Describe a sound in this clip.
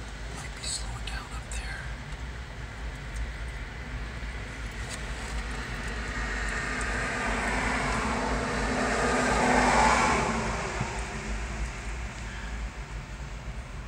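A freight train of empty autorack cars rolls past on the rails at a distance.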